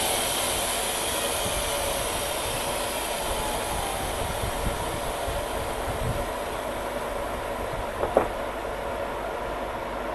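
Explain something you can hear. A portable sawmill runs.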